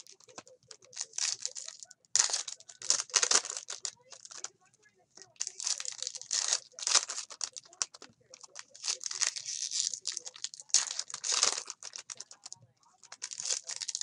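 Hands crinkle and tear open foil wrappers.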